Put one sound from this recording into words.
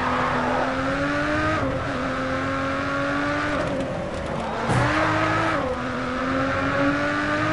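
A racing car engine roars at high revs, shifting gears as it speeds up.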